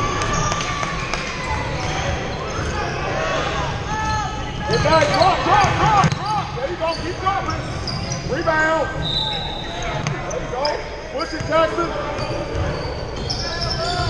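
Spectators chatter and call out nearby.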